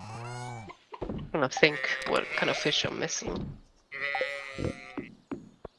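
Short game sound effects chime as a menu opens and closes.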